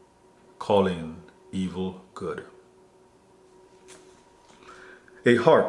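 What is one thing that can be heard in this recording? A man speaks calmly and closely into a microphone, in short phrases.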